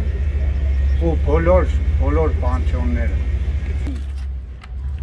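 A man speaks calmly into a microphone close by.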